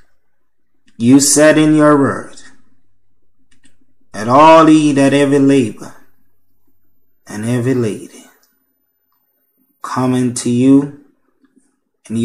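A man speaks slowly and calmly into a microphone, pausing between phrases.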